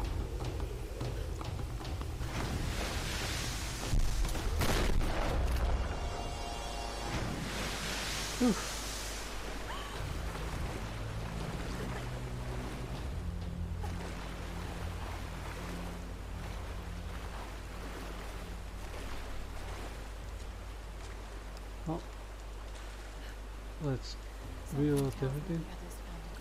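Rushing water roars and splashes loudly.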